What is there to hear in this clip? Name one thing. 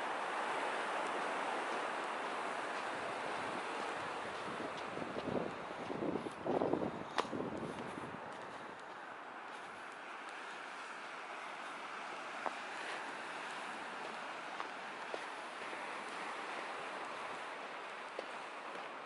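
Waves wash onto a shore nearby in a steady hush.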